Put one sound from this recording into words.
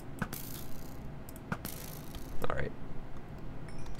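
A sword swings and hits something with a short thud.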